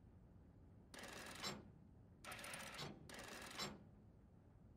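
A heavy dial turns with a grinding, clicking sound.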